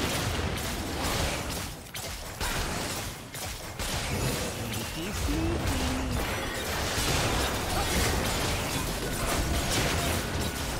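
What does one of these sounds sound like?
Game spell effects crackle and boom in a busy fight.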